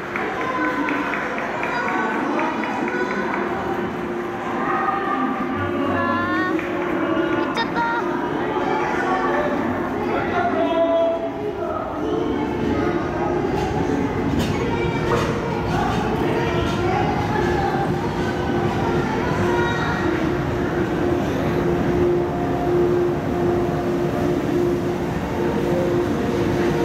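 A crowd of people chatter and call out close by.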